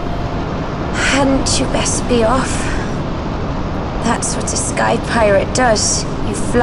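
A woman speaks calmly and softly.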